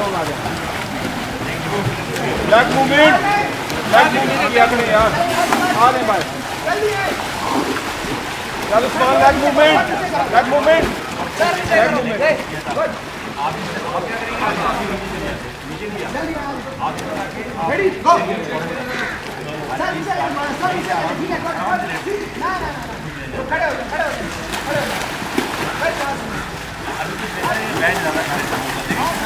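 Water splashes as swimmers move through a pool.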